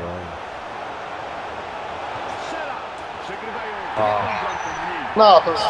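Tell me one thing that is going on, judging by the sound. A stadium crowd cheers loudly as a goal is scored.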